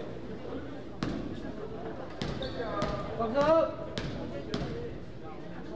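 A basketball bounces on a wooden floor with sharp thuds.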